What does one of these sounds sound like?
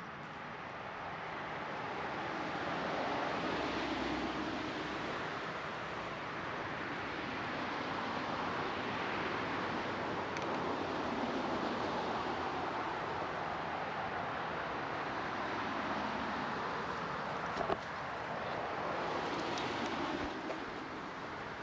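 Footsteps swish through wet grass outdoors.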